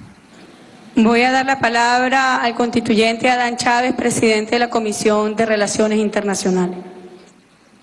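A woman speaks calmly into a microphone, heard through a loudspeaker.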